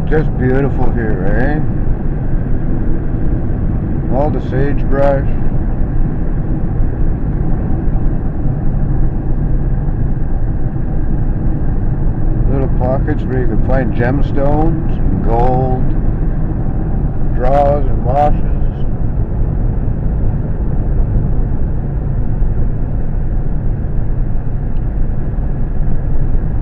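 A car engine hums and tyres roll steadily on a road, heard from inside the car.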